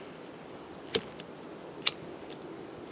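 Metal clinks sharply against metal.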